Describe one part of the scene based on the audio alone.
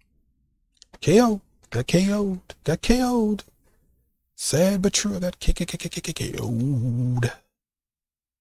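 A man speaks with animation close to a microphone.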